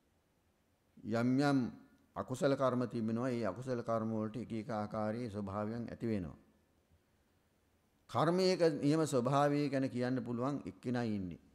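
A man chants slowly and calmly into a microphone.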